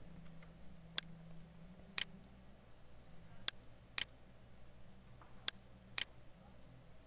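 A computer mouse clicks sharply several times.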